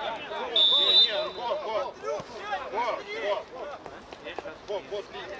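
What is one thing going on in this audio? Men shout to each other across an open outdoor field.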